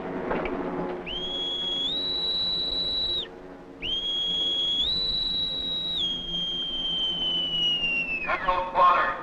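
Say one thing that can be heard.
An alarm horn sounds with a loud, steady wail that slowly falls away.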